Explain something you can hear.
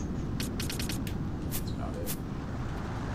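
Short electronic menu clicks tick in quick succession.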